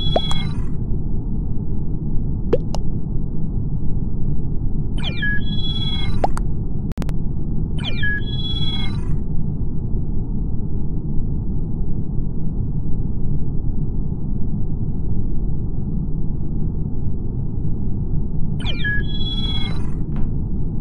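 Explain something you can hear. Short electronic chimes sound as chat messages pop up.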